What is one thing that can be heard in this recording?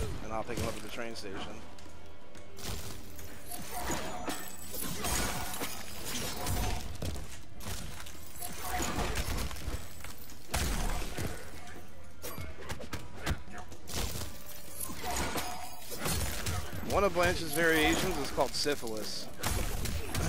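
Punches and kicks thud and smack in a fighting game.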